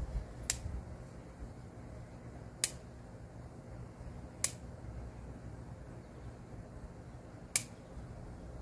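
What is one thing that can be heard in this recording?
Pruning shears snip sharply at plant stems every few seconds.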